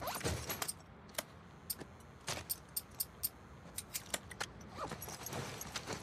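Metal parts of a rifle click and clack.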